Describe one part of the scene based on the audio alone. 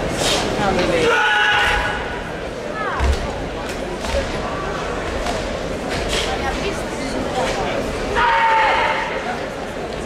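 Young men shout sharply together in a large echoing hall.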